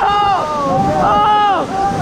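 Water splashes beside a moving boat.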